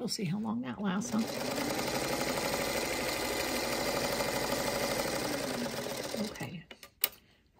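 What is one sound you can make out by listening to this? A sewing machine runs steadily, stitching fast.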